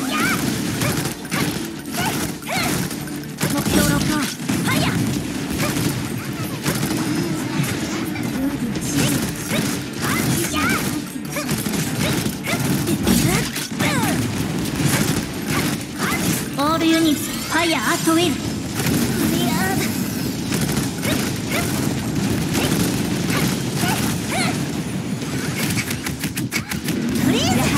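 Rapid sword slashes and blasts hit in quick bursts.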